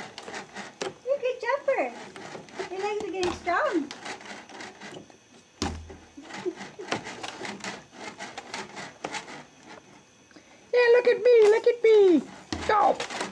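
A baby squeals and babbles close by.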